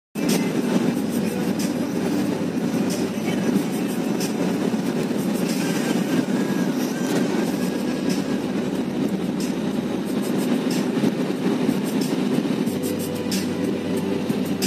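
Tyres roll on smooth road with a steady rumble.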